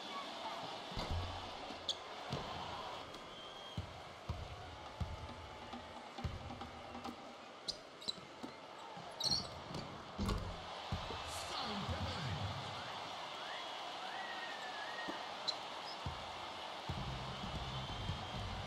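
A basketball bounces on a wooden floor in dull thumps.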